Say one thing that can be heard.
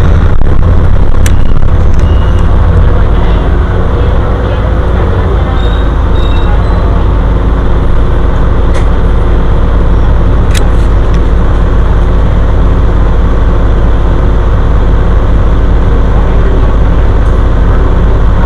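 A bus engine rumbles steadily as the bus rolls along.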